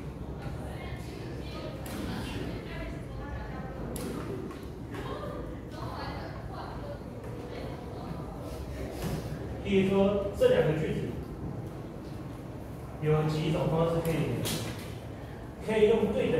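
A man speaks steadily in a room with some echo.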